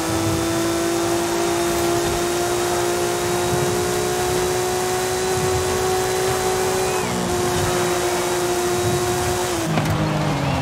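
A racing car engine roars at high speed with a steady pitch.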